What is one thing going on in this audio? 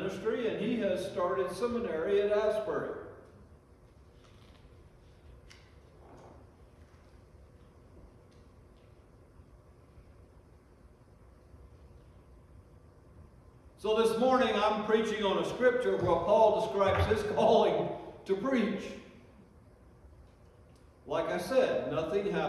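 An elderly man speaks with feeling into a microphone, in a room with some echo.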